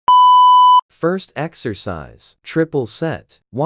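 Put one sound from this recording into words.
A man talks nearby with animation.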